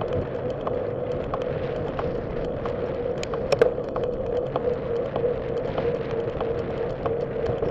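Tyres roll steadily over a paved path with a light hum.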